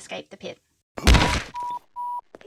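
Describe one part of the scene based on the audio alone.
A heavy body thuds onto a hard floor.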